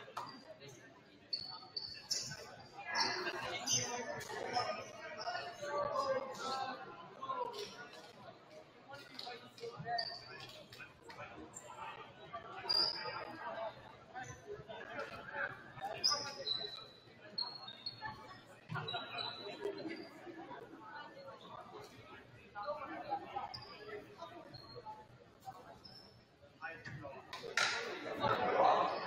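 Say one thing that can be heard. Young men call out and chatter across an echoing gym.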